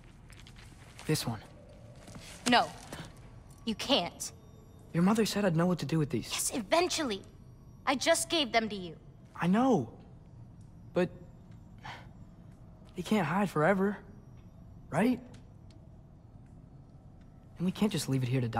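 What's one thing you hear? A teenage boy speaks softly and earnestly, close by.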